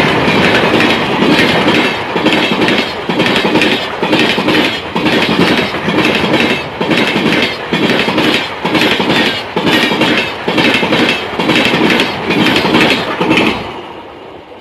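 A passing train's wheels clatter rhythmically over the rail joints, loud and close.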